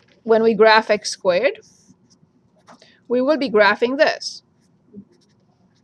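A marker squeaks on paper as it draws lines.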